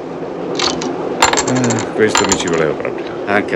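Poker chips click against each other.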